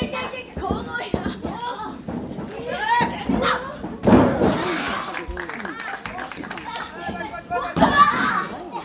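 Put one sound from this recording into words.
Bodies thud heavily onto a wrestling mat.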